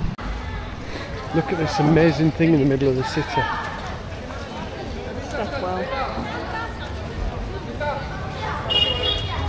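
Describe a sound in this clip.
Several men and women chatter at a distance outdoors.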